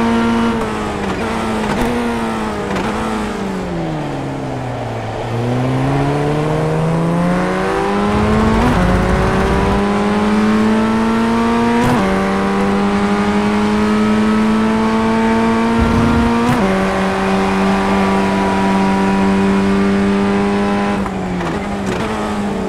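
A racing car engine whines, dropping in pitch while slowing, then rising and holding high as the car speeds up through the gears.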